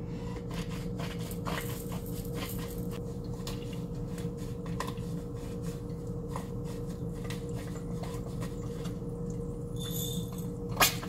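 A pepper mill grinds with a rapid crackling.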